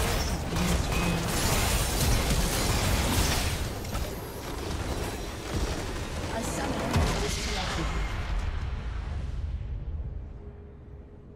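Game spell effects and explosions crash and whoosh in a loud battle.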